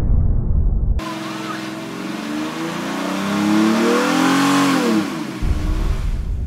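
Tyres screech as a car spins its wheels on the spot.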